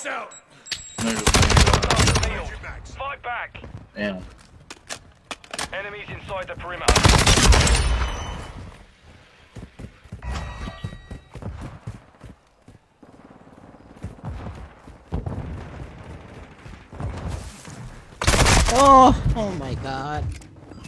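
Gunfire rattles in quick bursts from a video game.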